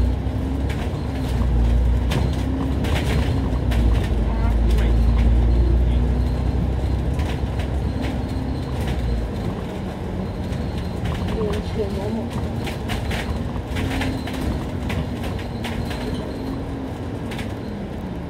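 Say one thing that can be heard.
A bus body rattles and clicks over the road.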